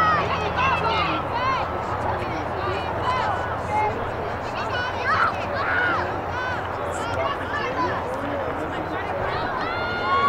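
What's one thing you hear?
A crowd of spectators cheers from a distance.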